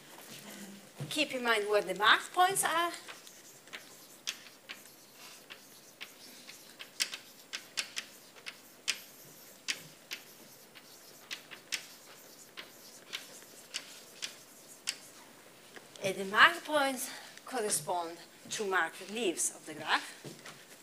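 A young woman speaks calmly, as in a lecture.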